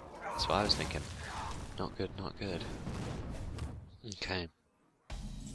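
A fiery blast bursts with a whoosh and a crackle.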